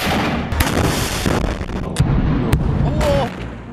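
An explosion booms and rumbles nearby.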